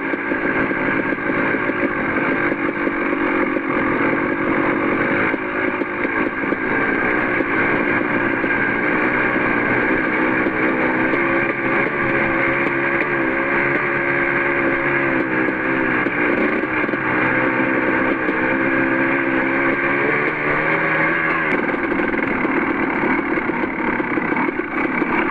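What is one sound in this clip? Tyres crunch and rattle over loose gravel and rocks.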